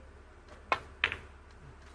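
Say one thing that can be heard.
Two snooker balls clack together.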